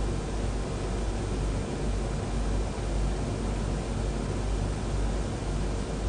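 Engines roar in a steady, loud rumble.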